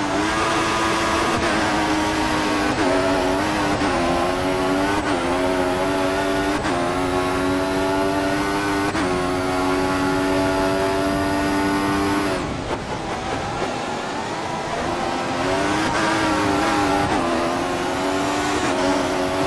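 A racing car engine screams, rising in pitch with each gear and dropping at shifts.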